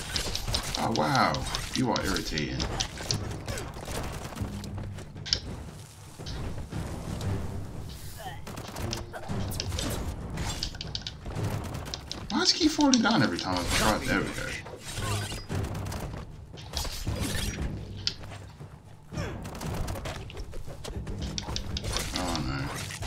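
Game weapons clash and strike in quick bursts.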